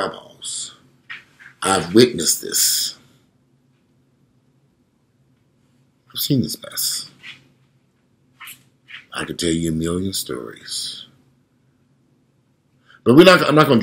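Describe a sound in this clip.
A man speaks calmly in short phrases, close to a microphone, heard as if over an online call.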